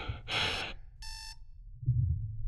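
An electronic alarm beeps sharply.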